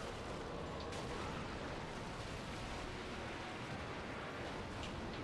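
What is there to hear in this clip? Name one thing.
A huge creature rumbles and crashes heavily nearby.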